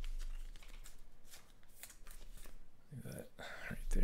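A card is set down softly on a cloth mat.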